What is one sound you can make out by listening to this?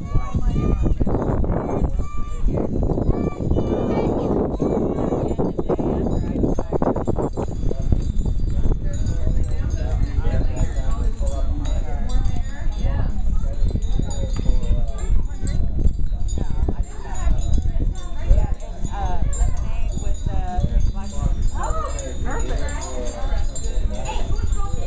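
Women and girls chat and call out nearby, outdoors.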